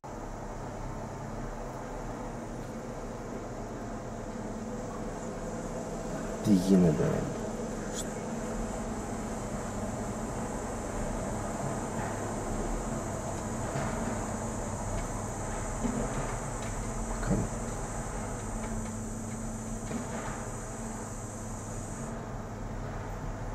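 Heavy diesel engines rumble and idle steadily nearby.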